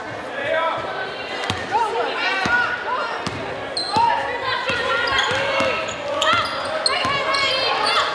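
A basketball bounces on the court with hollow thuds.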